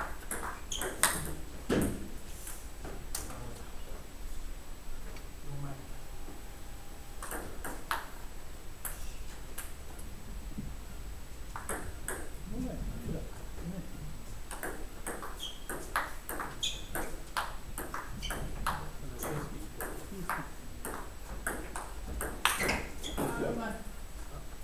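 A table tennis ball clicks back and forth off paddles and the table in a quick rally.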